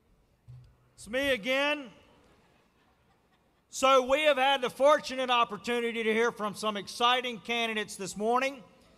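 A middle-aged man speaks calmly into a microphone over a loudspeaker in a large hall.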